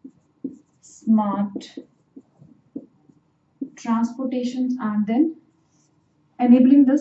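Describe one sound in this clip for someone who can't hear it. A young woman speaks calmly and explains, close to a microphone.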